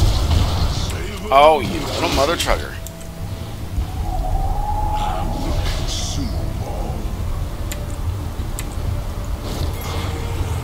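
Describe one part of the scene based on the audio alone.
Video game spell and hit effects crackle and whoosh.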